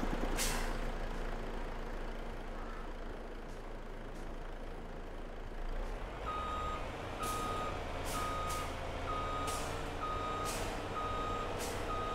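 A truck engine rumbles steadily at low speed.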